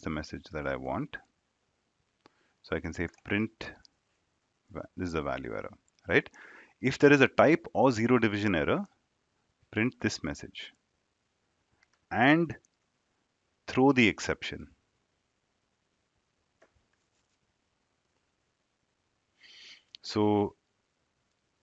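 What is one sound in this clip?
A young man speaks calmly and explains, close to a microphone, with pauses.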